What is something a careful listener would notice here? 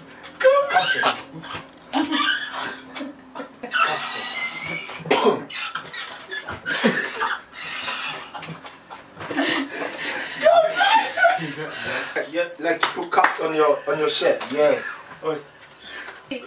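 A young woman laughs loudly and heartily nearby.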